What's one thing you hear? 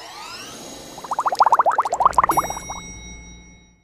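Bubbles pop in a quick burst.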